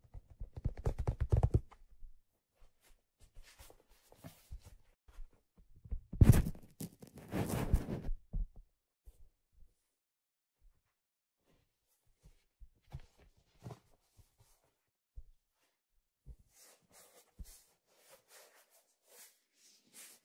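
Hands rub and tap a leather hat close to a microphone.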